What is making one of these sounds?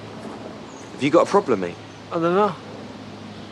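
A man speaks sharply close by.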